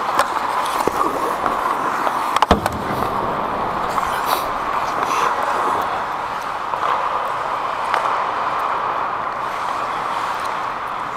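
Skate blades scrape and hiss on ice close by.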